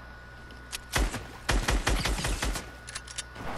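A gun fires a rapid burst of shots in a video game.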